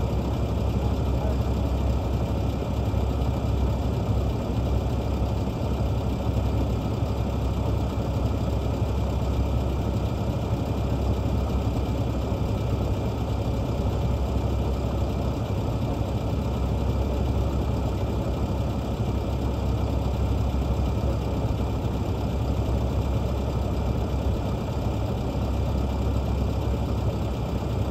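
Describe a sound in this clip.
A large truck engine idles with a steady low rumble.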